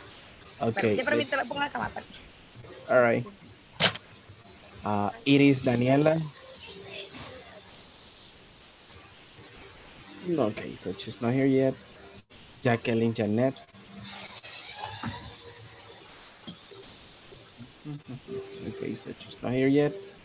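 A young man speaks with animation over an online call.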